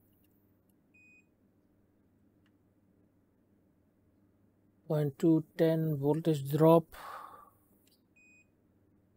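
A multimeter beeps briefly.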